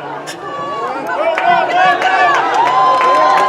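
A crowd cheers and yells loudly.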